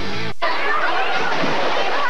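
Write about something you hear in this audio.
Water splashes as a person jumps into a pool.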